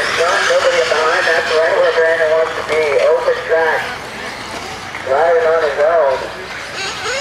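A small radio-controlled car's electric motor whines loudly, rising and falling in pitch.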